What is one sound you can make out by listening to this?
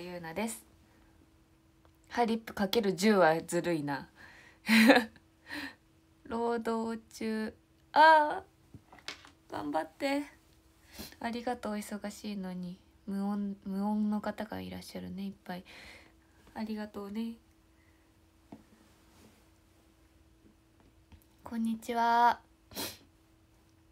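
A young woman talks cheerfully and close to a microphone, with pauses.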